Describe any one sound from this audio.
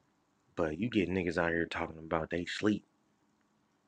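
A man speaks close to the microphone.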